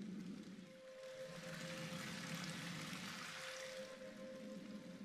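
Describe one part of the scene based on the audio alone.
Water pours and rushes loudly.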